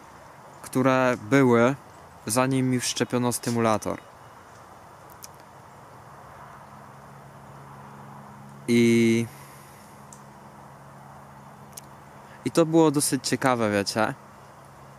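A young man talks calmly and close to the microphone, in short bursts with pauses.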